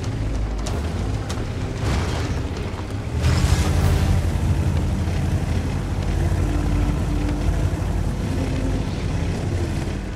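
Tank tracks clatter over dirt.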